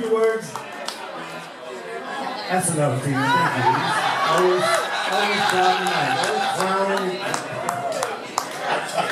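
A man sings through a microphone.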